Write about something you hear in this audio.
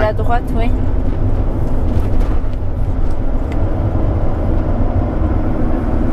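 A car drives along a rough road with a steady low rumble.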